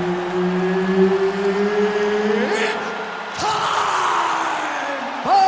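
A man announces through a loudspeaker, drawing out his words at length.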